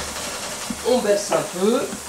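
A wooden spoon stirs nuts in a pot.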